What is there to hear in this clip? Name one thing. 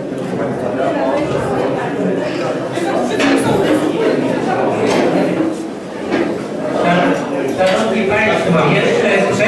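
Many men and women chatter all at once in a room.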